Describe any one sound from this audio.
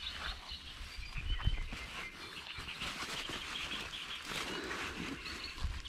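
A fabric bag rustles as it is handled close by.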